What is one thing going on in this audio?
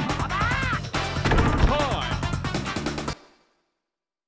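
Upbeat arcade game music plays loudly, then cuts off abruptly.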